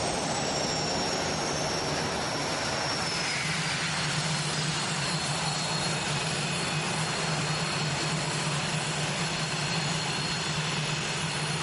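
A jet engine roars steadily with a high whine that slowly drops in pitch.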